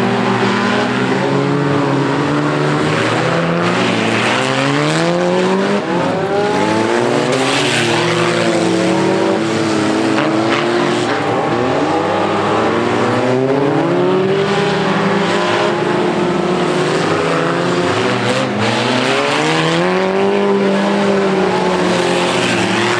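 Several car engines roar and rev loudly outdoors.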